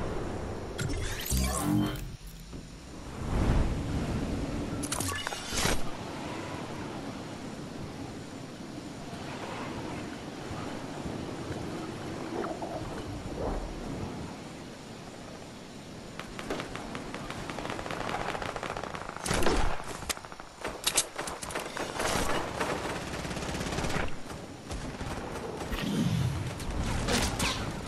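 Wind rushes steadily past a falling, gliding figure.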